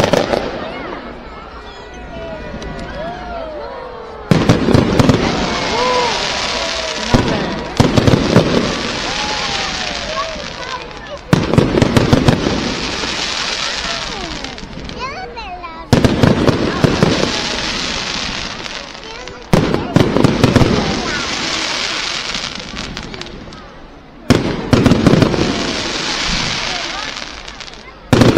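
Fireworks boom loudly overhead and echo.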